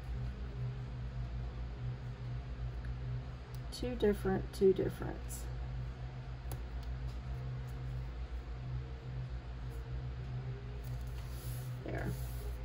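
Paper rustles and slides under hands close by.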